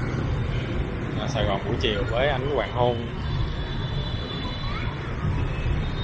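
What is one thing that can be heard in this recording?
Motor scooters and cars drive past in city street traffic.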